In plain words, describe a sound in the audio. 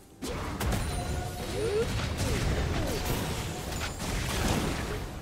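Game spells and attacks crackle and clash in a busy fight.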